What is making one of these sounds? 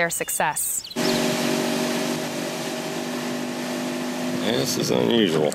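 A boat's outboard motor roars steadily.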